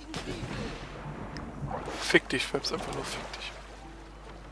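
Water splashes heavily as a swimmer plunges in.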